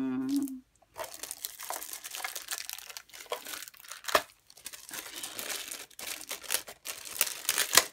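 Plastic wrap crinkles loudly as it is peeled off.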